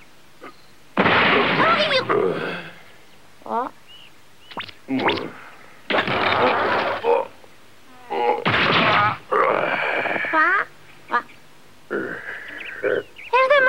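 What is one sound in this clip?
A deep cartoon male voice grunts and strains loudly.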